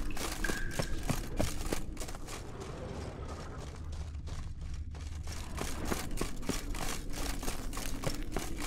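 Footsteps tread steadily on a stone floor.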